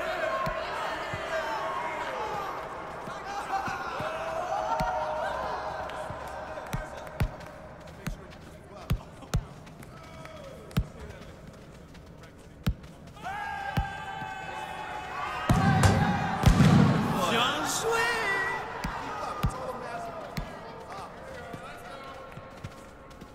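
A football is kicked with short, sharp thuds.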